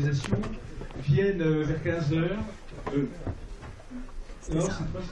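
A young man talks nearby.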